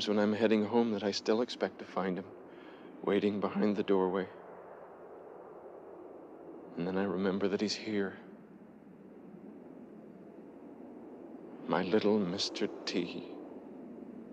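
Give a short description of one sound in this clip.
A young man speaks quietly and solemnly nearby.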